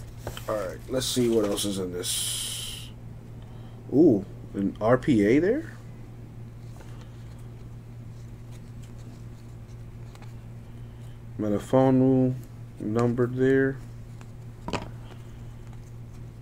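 Trading cards rustle and slide as they are shuffled by hand.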